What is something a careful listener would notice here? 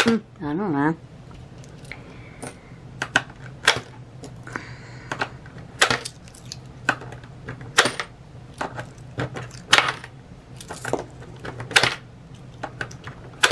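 Coins clink and tap against one another on a hard surface.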